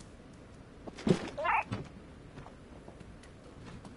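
Stacks of books topple and thud onto a wooden floor.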